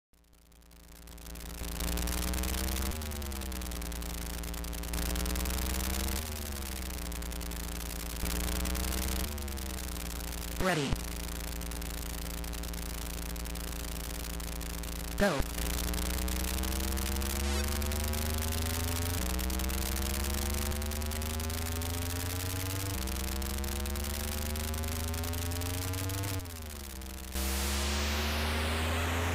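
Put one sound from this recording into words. A retro game car engine buzzes, rising and falling in pitch as it revs.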